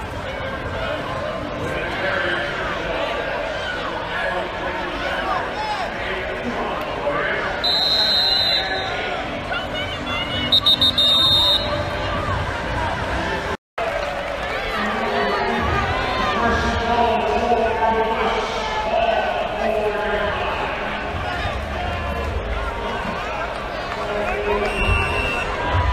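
A large stadium crowd cheers and chatters, echoing in the open stands.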